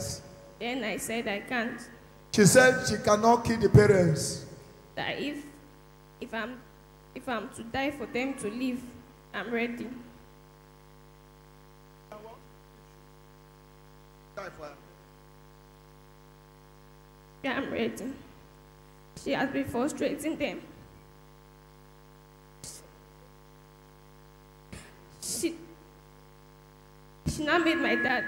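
A man speaks into a microphone with animation, heard through loudspeakers in an echoing hall.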